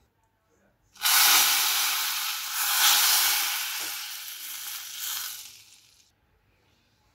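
Liquid pours into a hot pan with a loud hissing sizzle that slowly fades.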